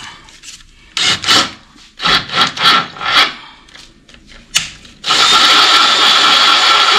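A cordless drill whirs in bursts, boring into metal.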